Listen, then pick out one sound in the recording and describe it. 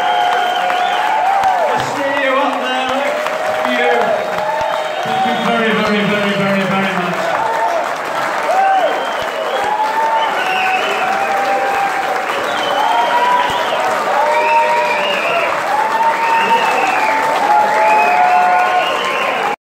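Many people in a crowd cheer, whoop and whistle.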